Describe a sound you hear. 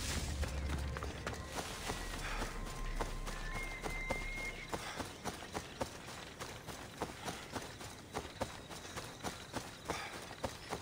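Footsteps swish through tall grass at a steady pace.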